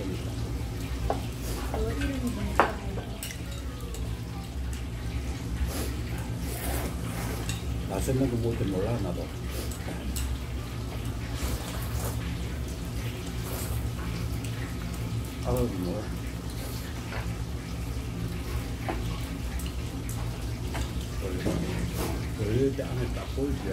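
Chopsticks click against bowls.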